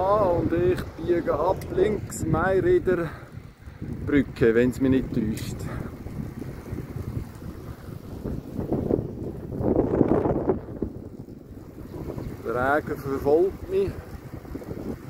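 Bicycle tyres hum on smooth pavement.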